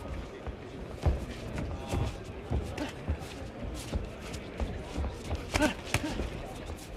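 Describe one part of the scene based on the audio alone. Gloved punches thud sharply against a boxer's body.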